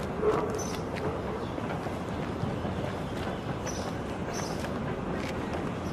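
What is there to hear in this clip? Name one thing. Two people walk with footsteps on pavement outdoors.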